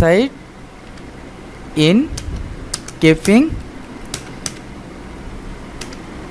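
Keys click on a computer keyboard in short bursts.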